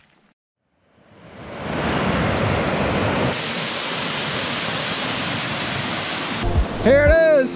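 Water rushes and splashes over rocks.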